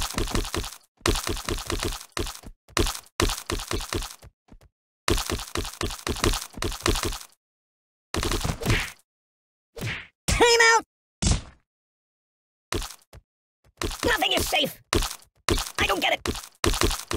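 Rapid thuds of objects striking a ragdoll toy repeat in quick bursts.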